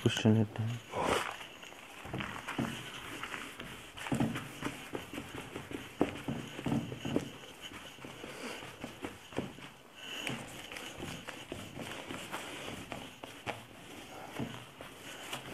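A cloth rubs and swishes across a whiteboard, wiping it.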